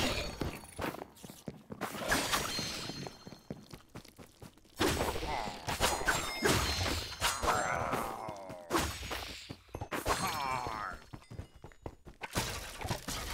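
Game weapons strike and clash in quick bursts.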